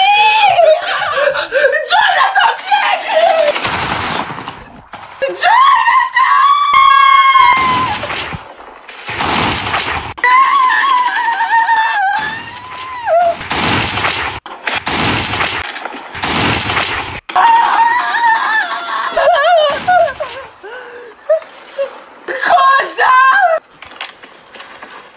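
A young man sings loudly and dramatically, close by.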